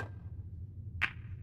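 A pool ball knocks against another ball.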